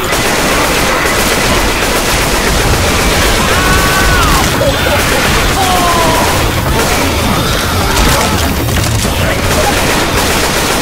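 Zombies growl and screech nearby.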